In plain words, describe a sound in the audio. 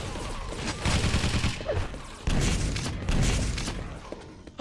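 Rocket blasts boom and rumble.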